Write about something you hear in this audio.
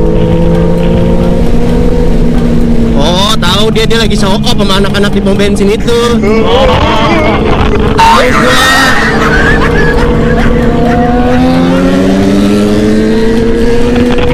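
A motorcycle engine hums steadily, its pitch rising and falling with the throttle.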